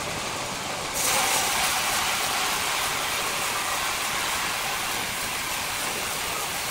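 A band saw blade cuts into a large log with a loud, steady hiss.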